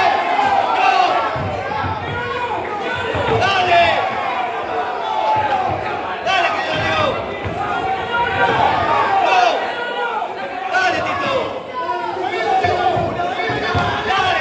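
Boxing gloves thud against a fighter's body and head guard.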